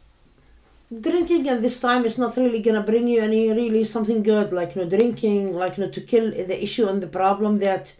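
A woman speaks calmly close to a microphone.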